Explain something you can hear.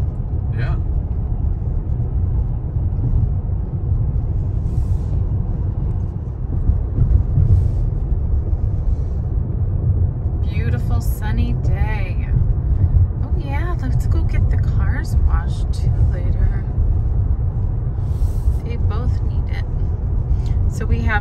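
A car drives steadily along a road, with a low rumble of tyres and engine inside the cabin.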